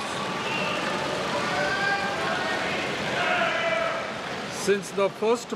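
A crowd of people murmur and chatter in a large hall.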